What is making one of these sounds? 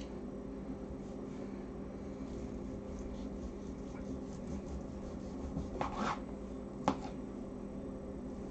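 A knife scrapes and taps on a plastic cutting board.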